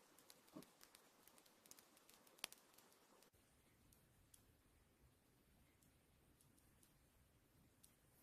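Knitting needles click and tap softly against each other.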